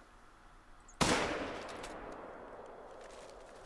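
A rifle shot cracks loudly and echoes away across open ground.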